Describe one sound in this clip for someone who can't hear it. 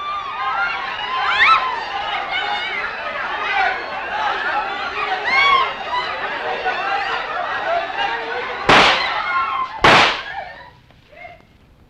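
A large crowd shouts and clamours.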